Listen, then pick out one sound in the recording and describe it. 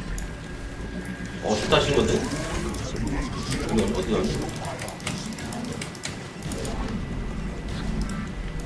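Short electronic game sounds blip and chime.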